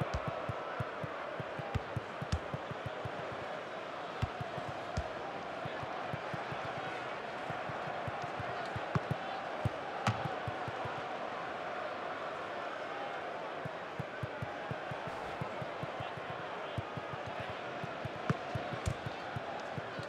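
A football is kicked with dull thumps, again and again.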